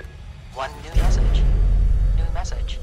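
A voice speaks through an answering machine's small loudspeaker.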